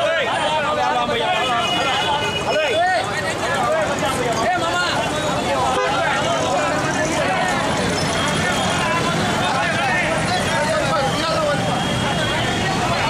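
A crowd of men talks and shouts loudly outdoors.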